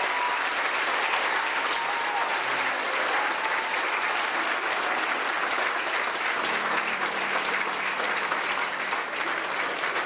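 A choir of men and women sings loudly in a large hall.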